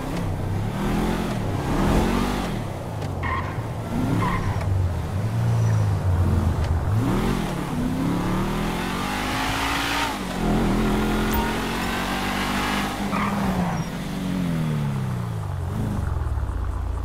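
A car engine revs up and down as a car drives.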